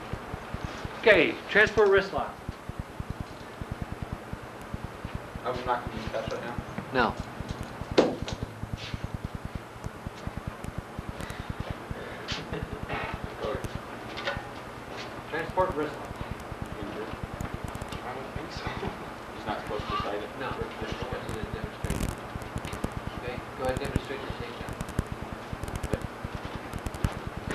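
A man explains calmly.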